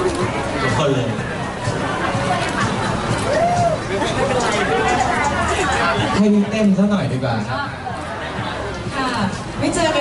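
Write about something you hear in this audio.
A crowd chatters and murmurs nearby.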